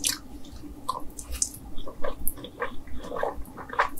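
A woman slurps noodles up close.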